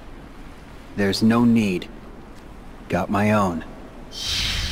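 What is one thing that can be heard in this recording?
A young man speaks calmly and briefly, close up.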